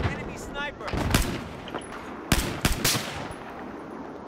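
Gunshots ring out sharply with a short echo.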